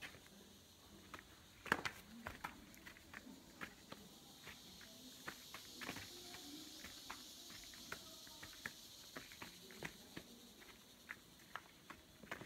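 Footsteps crunch along a dirt path.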